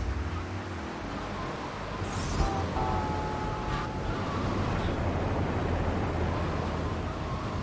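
A car engine hums steadily as the car drives.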